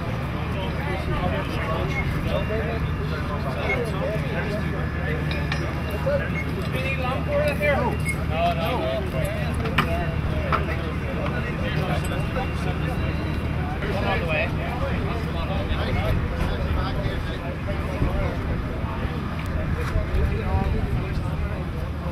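Men talk to each other outdoors.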